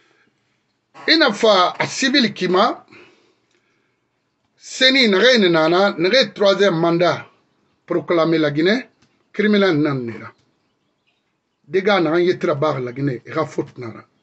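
A middle-aged man speaks forcefully and with animation, close to a microphone.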